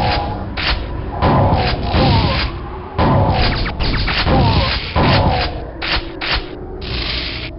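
Shotgun blasts fire in quick succession.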